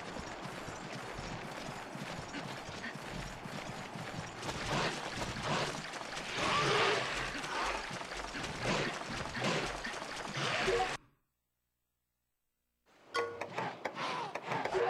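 Water splashes steadily as someone wades through a stream.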